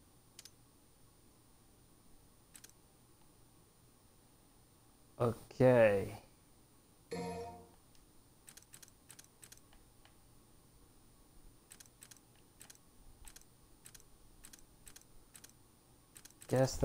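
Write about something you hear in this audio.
Menu selection clicks tick in quick succession.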